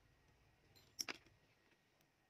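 Small metal parts click together in hands.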